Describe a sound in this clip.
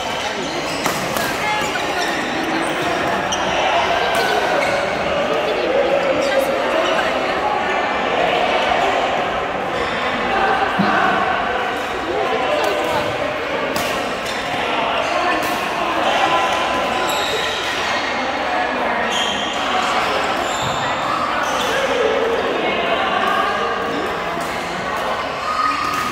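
Many men and women chatter and call out in a large echoing hall.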